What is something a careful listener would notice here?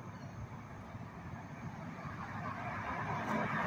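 Another car approaches along the road, growing louder.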